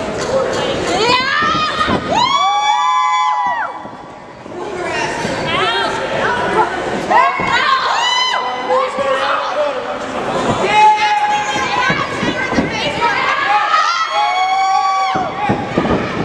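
A young woman screams loudly.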